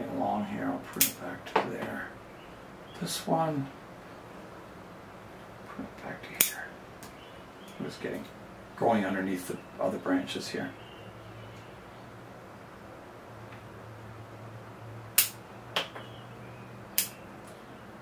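Small pruning shears snip twigs with sharp clicks.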